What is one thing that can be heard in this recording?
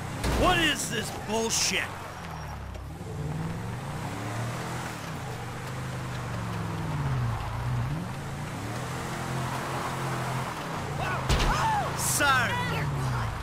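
Tyres skid and scrape over sand.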